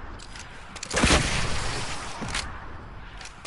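A rocket explodes with a roaring blast.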